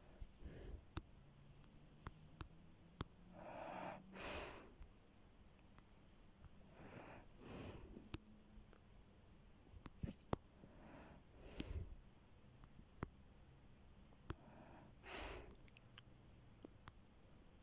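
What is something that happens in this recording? Soft clicks of keys tapping on a phone keyboard come now and then.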